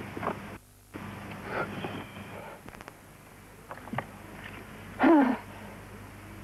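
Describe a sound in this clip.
A man speaks tensely.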